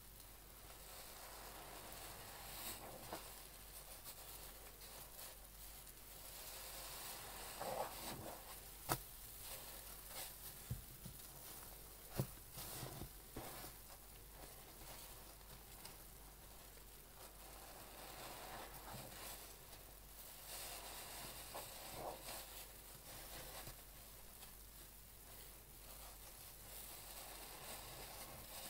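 Foam crackles and fizzes softly.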